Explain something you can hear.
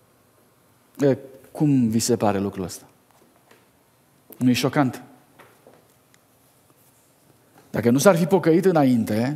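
A man speaks with emotion through a microphone in a large echoing hall, pausing between phrases.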